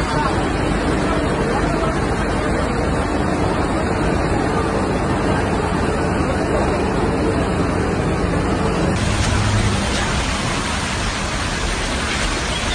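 Floodwater rushes and roars loudly.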